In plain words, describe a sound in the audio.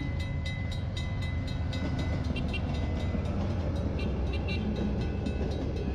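A level crossing bell rings rapidly and steadily.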